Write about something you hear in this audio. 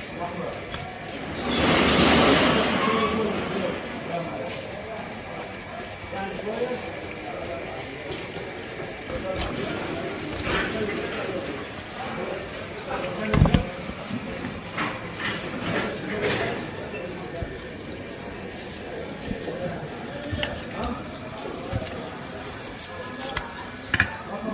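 A knife slices through fish skin and flesh.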